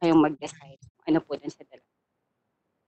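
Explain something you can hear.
A young woman speaks close to a microphone, heard through an online call.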